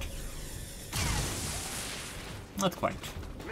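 A gun fires a rapid, hissing burst.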